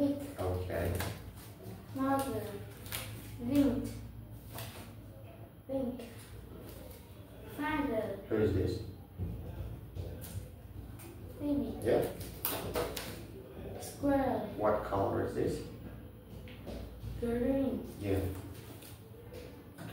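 A boy repeats words aloud, close by.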